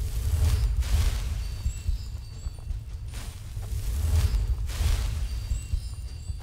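A magic flame crackles and hums steadily in a hand.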